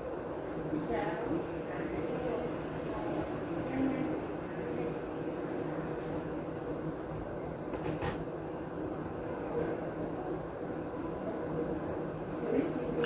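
A fork clinks against a bowl.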